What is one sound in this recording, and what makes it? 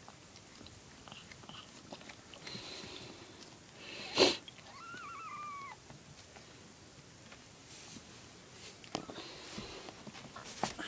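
A kitten chews and laps food close by.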